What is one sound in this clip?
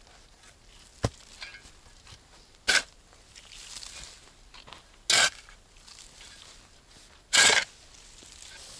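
A spade repeatedly cuts and scrapes into dirt.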